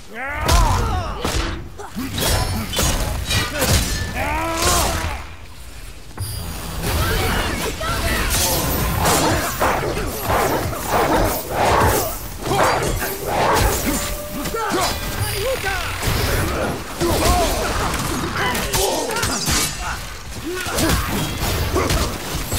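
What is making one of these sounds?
Heavy blows and impacts thud and crash in a fierce fight.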